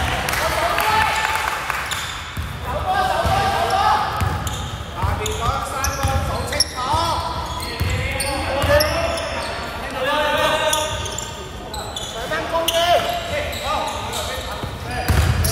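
A basketball bounces on a hard floor.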